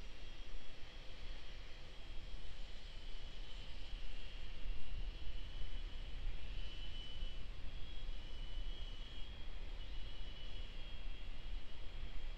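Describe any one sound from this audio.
Gas hisses steadily as a rocket vents vapour in the distance.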